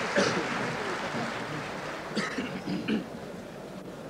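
A large crowd applauds and cheers outdoors.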